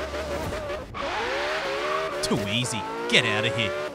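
A sports car engine revs and accelerates.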